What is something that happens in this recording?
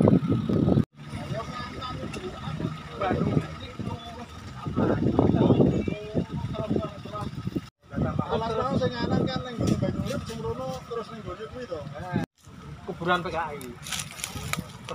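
Men talk in a group outdoors, close by.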